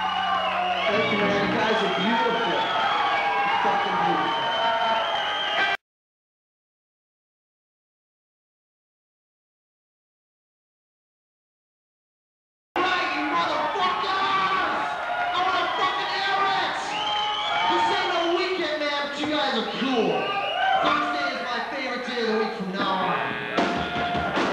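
Electric guitars play distorted riffs loudly through amplifiers.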